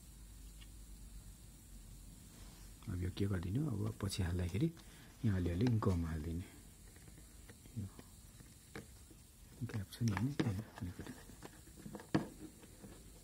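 Fingers tap and knock lightly on a phone.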